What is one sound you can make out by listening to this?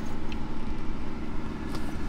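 A hand rustles against a leather seat.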